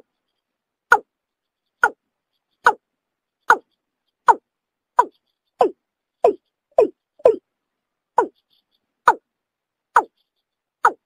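A bird calls with short, sharp notes that drop in pitch, repeated about once a second.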